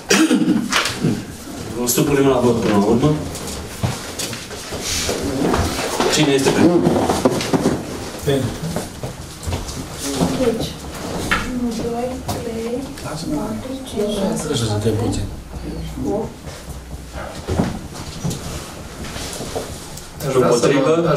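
A man speaks at length, heard from across a room.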